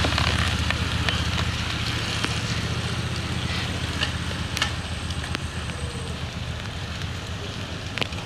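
Bicycle gears click now and then.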